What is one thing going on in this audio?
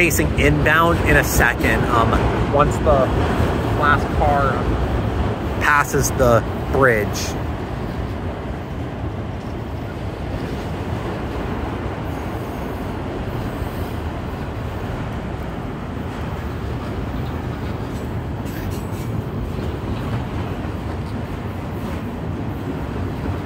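Traffic rumbles steadily on a road below.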